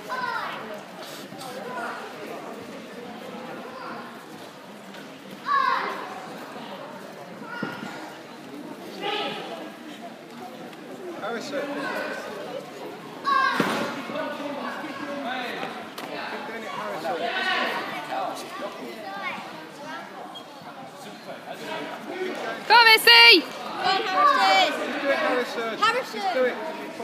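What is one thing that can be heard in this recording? Voices of a crowd murmur and call out in a large echoing hall.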